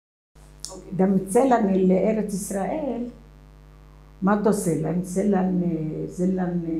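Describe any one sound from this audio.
An elderly woman speaks calmly and closely into a microphone.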